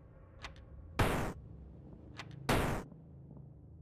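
A video game's attack sound effect bursts out loudly twice.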